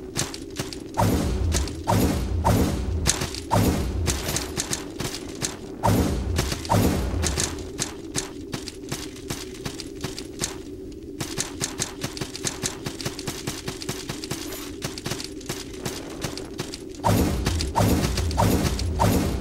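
A sword swishes and strikes with heavy thuds.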